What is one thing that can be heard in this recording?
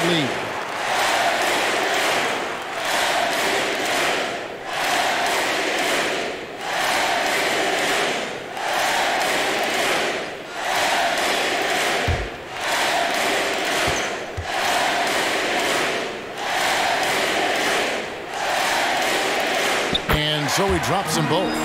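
A large crowd roars and chants in a rhythmic swell in an echoing arena.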